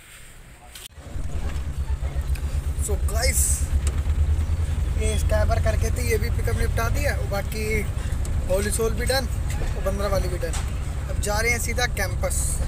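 A vehicle engine rumbles steadily from inside the cab.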